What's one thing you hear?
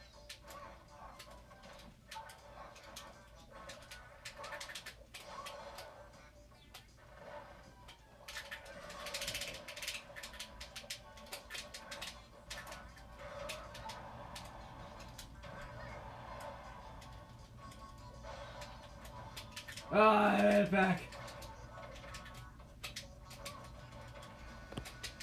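Video game fighting sounds, with quick hits and whooshes, play from a television speaker.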